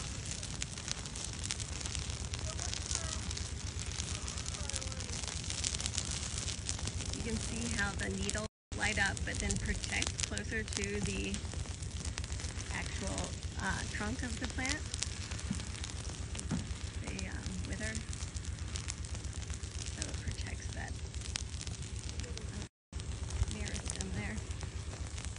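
Grass and brush crackle as a low fire burns.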